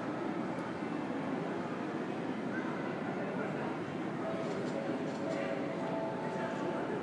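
A low hum of ventilation fills a large echoing hall.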